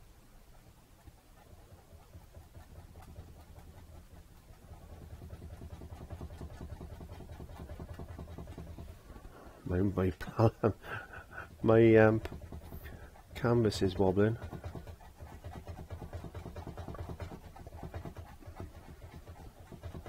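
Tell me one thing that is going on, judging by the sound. A stiff brush dabs and scrubs softly against canvas.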